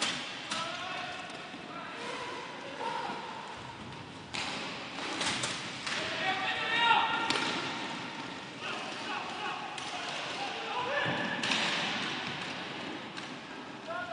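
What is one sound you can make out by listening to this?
Hockey sticks clack sharply against a ball and against each other in an echoing hall.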